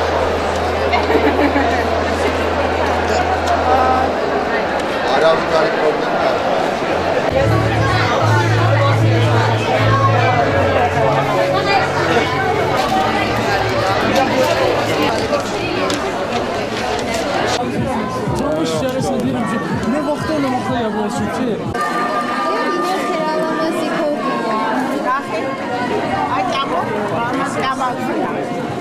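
A crowd of people chatters in a large indoor hall.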